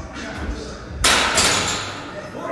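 A barbell drops and thuds onto a rubber floor in an echoing hall.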